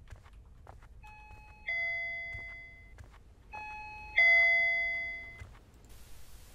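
A doorbell chimes twice with a two-note ding-dong.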